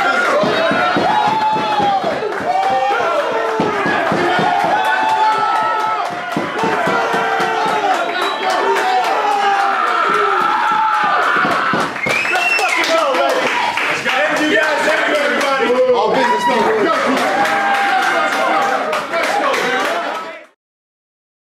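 A crowd of men chatter and shout in an echoing room.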